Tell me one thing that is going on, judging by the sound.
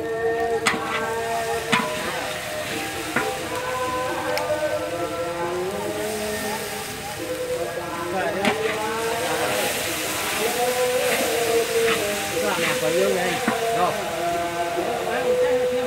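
A metal spatula scrapes and clanks against a wok.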